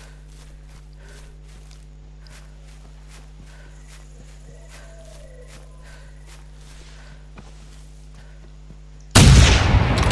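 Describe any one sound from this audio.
Footsteps swish through grass at a steady pace.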